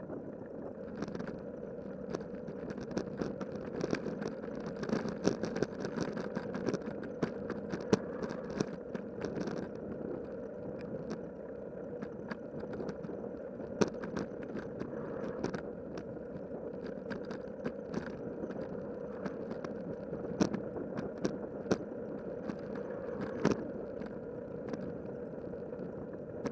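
A bicycle rattles and clicks over bumps in the road.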